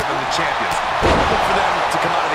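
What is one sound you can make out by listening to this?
A heavy thud lands as a body hits the ring mat.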